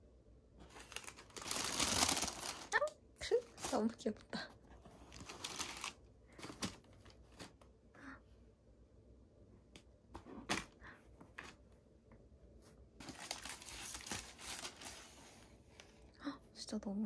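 Tissue paper rustles and crinkles as it is pulled open.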